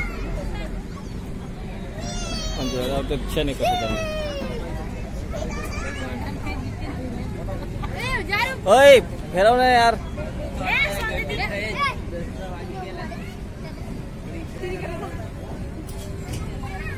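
A crowd of people chatters outdoors in the background.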